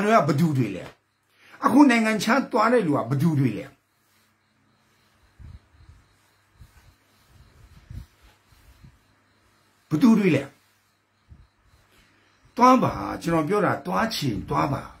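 A middle-aged man speaks with animation close to a microphone, pausing between phrases.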